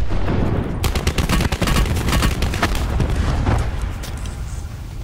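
Rapid gunfire rattles loudly, then fades.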